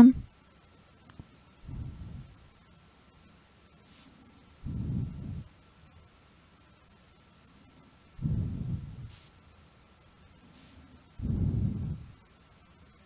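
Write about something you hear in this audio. An arrow twangs off a bow several times.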